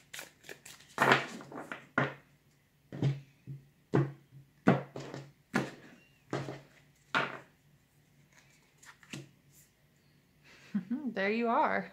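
Playing cards are shuffled and riffled in hands.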